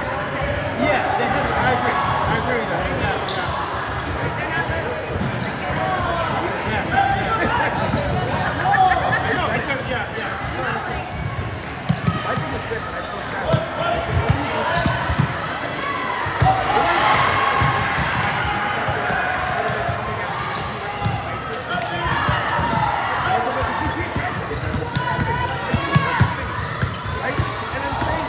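A crowd of spectators chatters and calls out, echoing in a large hall.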